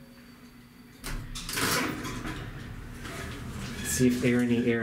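Elevator doors rumble and slide open.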